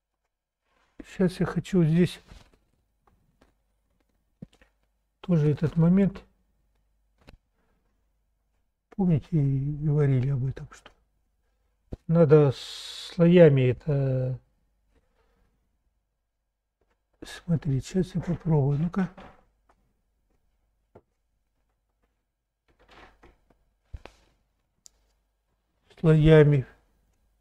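A middle-aged man talks calmly close by, in short phrases with pauses.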